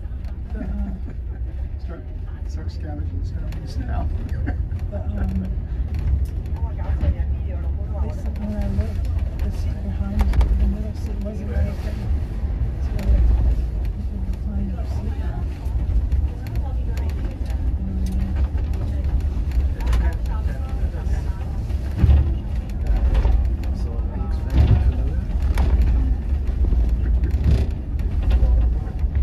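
Wind rumbles against a moving vehicle outdoors.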